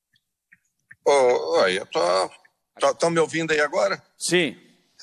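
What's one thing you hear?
A middle-aged man speaks over an online call.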